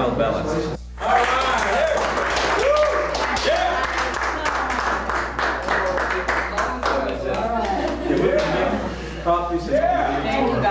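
A crowd of men and women cheer and talk excitedly in a small room.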